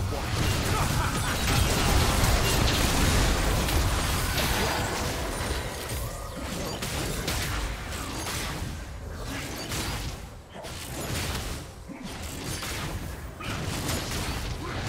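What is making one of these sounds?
Spell effects and attacks clash and burst in a game's battle.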